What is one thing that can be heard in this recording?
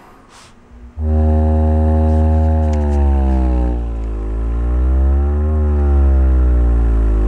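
A subwoofer booms with a loud, deep, steady drone that slowly bends in pitch.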